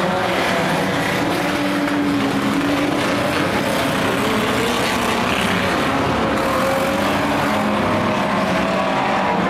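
A crowd cheers nearby.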